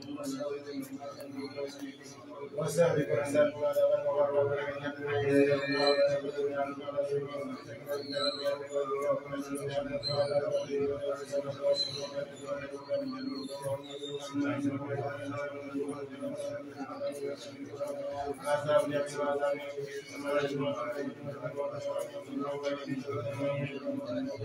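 A group of men recite aloud together in a steady chant.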